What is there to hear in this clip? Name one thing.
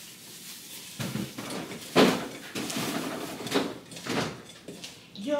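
A refrigerator door opens and shuts with knocks and rattles.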